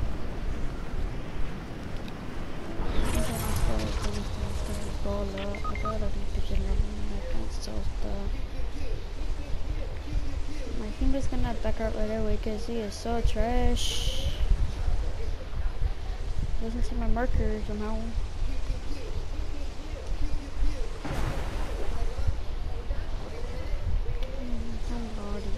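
Wind rushes past steadily during a fast glide through the air.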